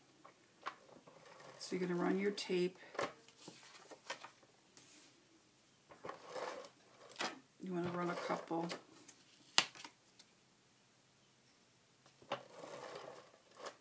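An acrylic stamp block taps down onto paper.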